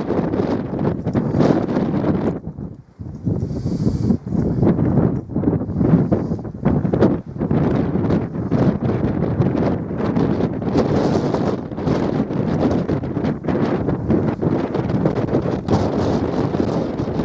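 Wind gusts and rumbles loudly outdoors.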